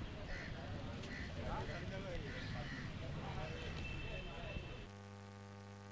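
A crowd of men chatters and calls out nearby.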